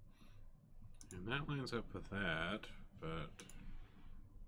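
A man speaks briefly into a close microphone, with animation.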